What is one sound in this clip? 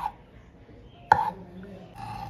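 A knife taps on a wooden board.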